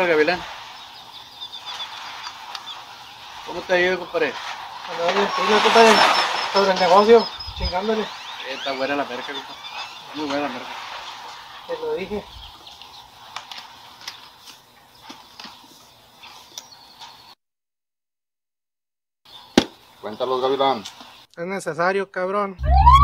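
Several men talk nearby outdoors.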